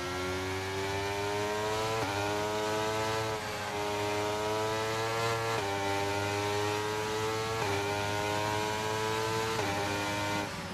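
A racing car engine whines steadily, rising in pitch and dropping sharply at each gear change.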